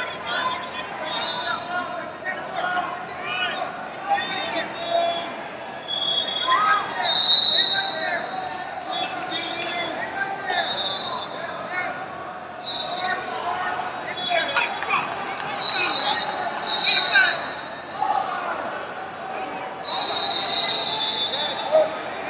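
Sneakers squeak sharply on a mat.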